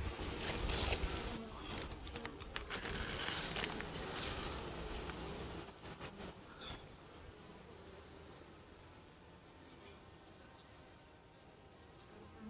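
Bees hum softly.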